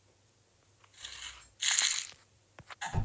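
Small candies rattle as they pour from a scoop into a bag.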